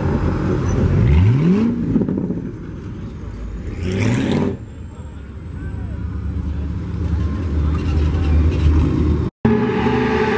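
A pickup truck engine rumbles and revs as it rolls slowly past.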